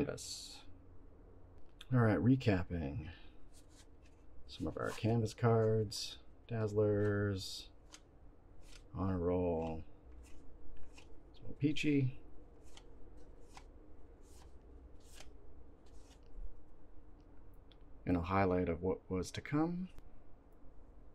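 Trading cards rustle and slide against each other as they are flipped through by hand.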